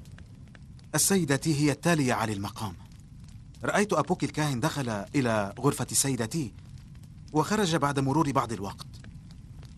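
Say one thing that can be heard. A young man speaks earnestly nearby.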